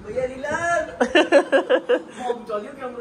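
A young man laughs heartily.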